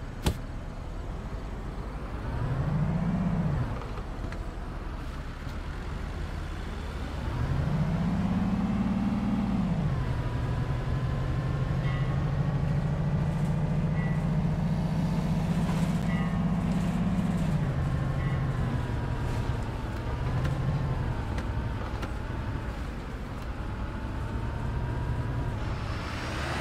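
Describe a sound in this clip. A bus engine hums and revs up and down.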